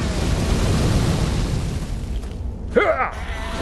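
A flamethrower roars with a loud, rushing blast of fire.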